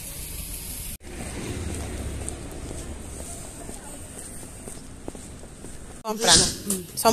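Footsteps scuff along a paved path.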